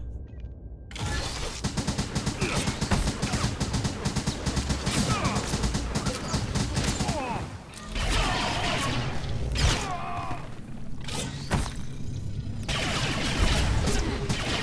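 Game combat sounds clash and hum.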